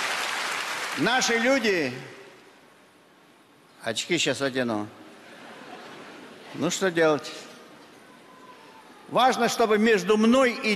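An elderly man speaks slowly into a microphone, with pauses.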